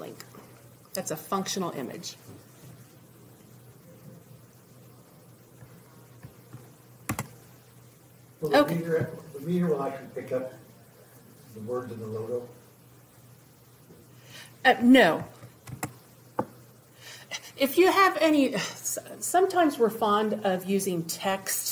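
A woman speaks calmly into a microphone, presenting with pauses.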